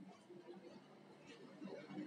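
Carrot pieces tip out of a steel jar with a soft clatter.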